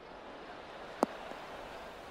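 A golf ball lands with a short thud on the grass.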